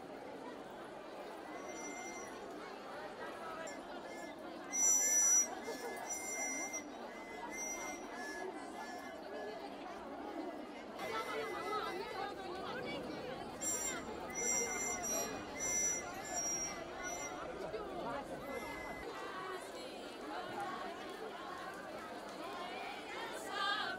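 A large crowd of women chatters outdoors.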